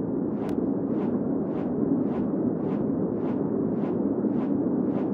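An eagle's wings beat in steady, rhythmic whooshes.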